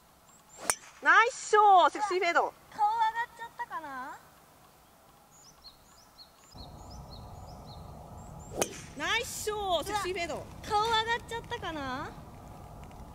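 Young women exclaim and cheer with animation nearby.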